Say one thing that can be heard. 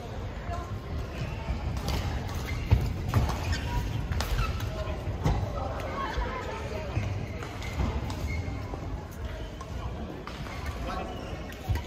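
Shuttlecocks are hit with rackets, making sharp pops in a large echoing hall.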